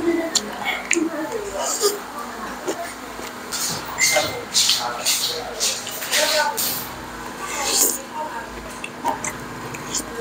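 Chopsticks and a spoon clink against a bowl.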